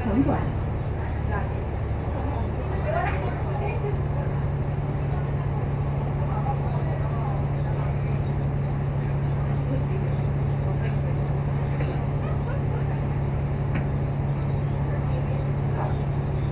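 A bus engine hums steadily at close range.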